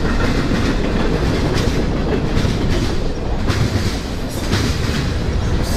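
Steel wheels clatter rhythmically over rail joints.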